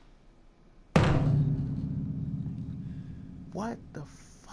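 A piano chord is struck loudly and rings out slowly.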